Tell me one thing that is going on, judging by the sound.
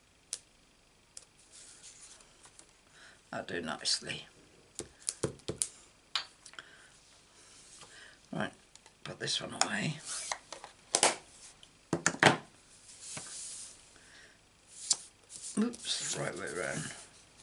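Paper slides and rustles on a table.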